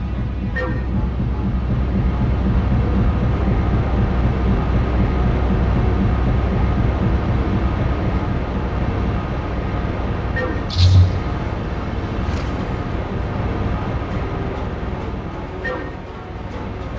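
A short bright chime sounds as an item is collected.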